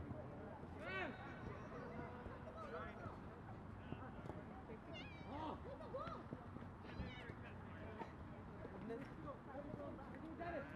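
Young men shout and call out to each other across an open field in the distance.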